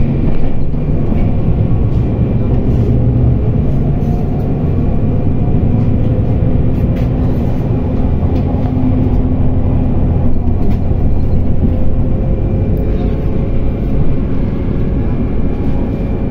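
A vehicle's engine hums steadily as it drives, heard from inside.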